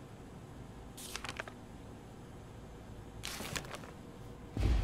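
A paper sheet rustles as it is handled.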